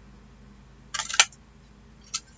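A paper punch clicks shut.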